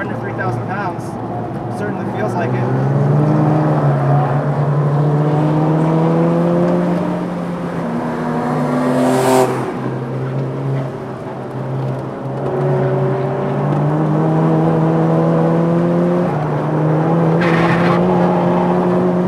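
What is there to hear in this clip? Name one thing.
A car engine roars at high revs, rising and dropping in pitch as gears change.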